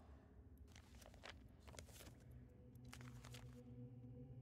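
Paper pages of a book flip and rustle.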